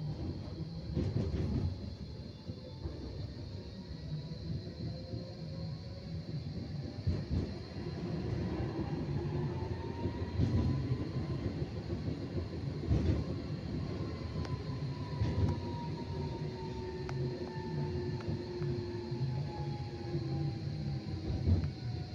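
Tram wheels clack over rail joints.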